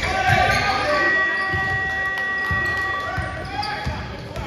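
A referee blows a long whistle.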